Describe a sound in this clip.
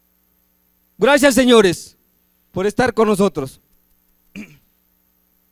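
A man speaks loudly into a microphone, heard through loudspeakers.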